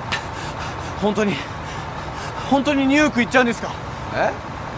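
A young man asks questions with agitation.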